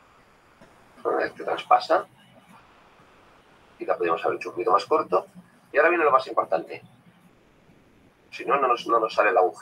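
A young woman speaks calmly through a computer microphone, in short bursts.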